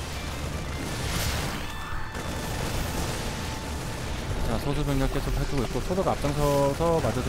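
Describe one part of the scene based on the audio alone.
Video game battle sounds crackle and clash.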